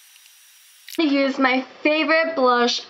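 A young woman talks brightly, close by.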